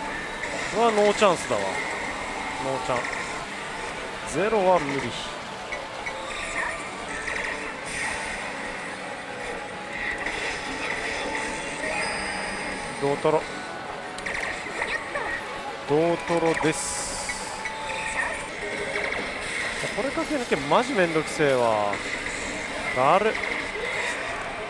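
A slot machine plays loud electronic music and sound effects.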